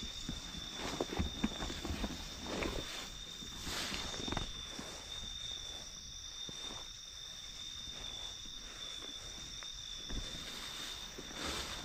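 Grass and leaves rustle as someone walks through them.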